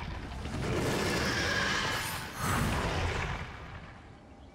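A large beast bursts apart with a loud rushing whoosh that fades away.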